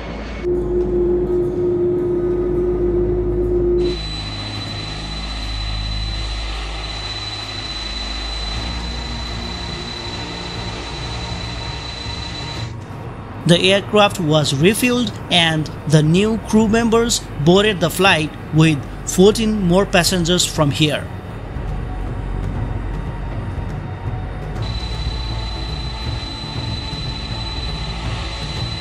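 Jet engines hum and rumble steadily.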